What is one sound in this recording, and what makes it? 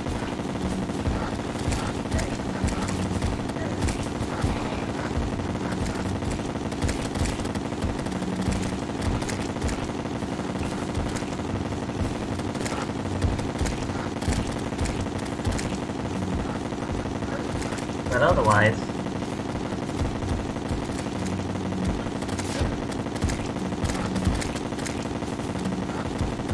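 Video game weapons fire in rapid bursts of sharp clicks and zaps.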